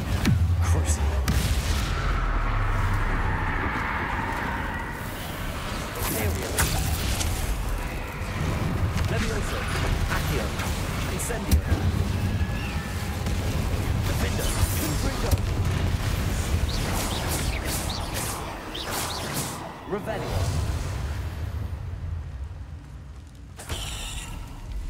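Magic spells crackle and burst in quick bursts.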